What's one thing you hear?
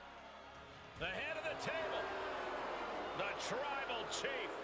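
A large crowd cheers loudly in an echoing arena.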